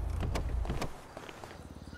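A car door thuds shut.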